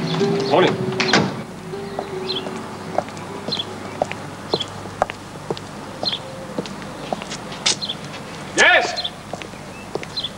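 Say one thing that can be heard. Footsteps tap along a hard path.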